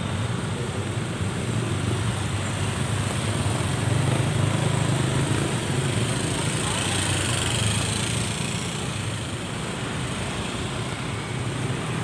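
Busy street traffic rumbles steadily outdoors.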